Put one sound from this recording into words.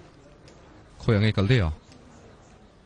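A young man answers briefly in a low voice close by.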